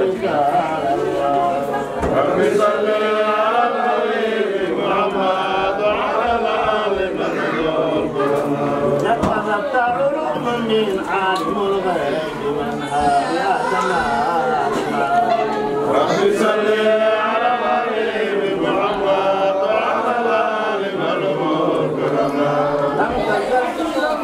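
A man chants in a loud, melodic voice nearby.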